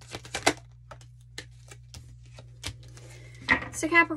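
A card is laid down on a table.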